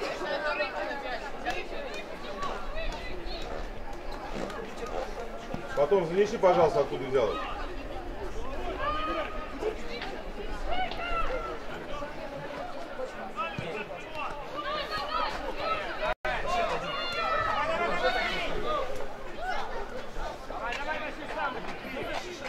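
Spectators talk and call out close by outdoors.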